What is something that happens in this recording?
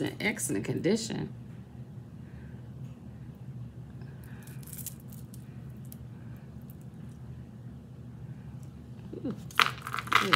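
A metal charm bracelet jingles in hands.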